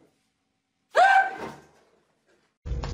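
A man yells in fright.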